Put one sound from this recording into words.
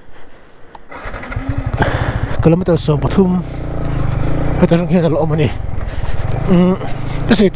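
A motorcycle engine rumbles and revs.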